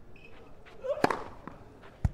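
A tennis racket strikes a ball hard on a serve.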